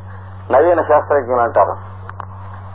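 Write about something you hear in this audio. An elderly man speaks a short phrase loudly.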